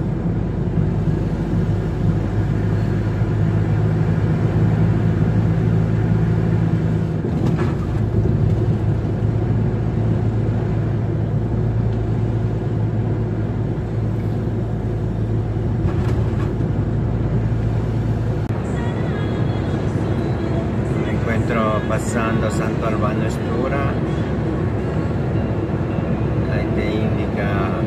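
A vehicle's engine hums steadily as tyres roll over the road.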